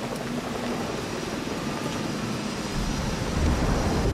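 Wind rushes past loudly during a high glide.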